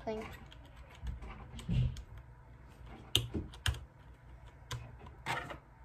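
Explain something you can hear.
Keyboard keys click and clack as they are pressed.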